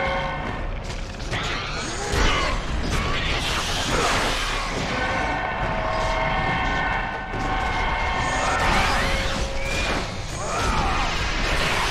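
Blades slash and clang against enemies.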